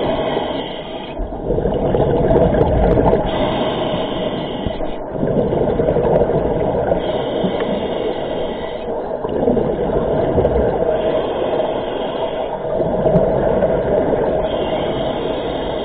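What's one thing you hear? Scuba breathing bubbles out in loud rushing bursts underwater.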